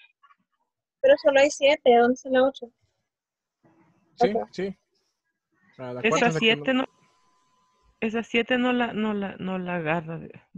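A young woman speaks calmly over an online call.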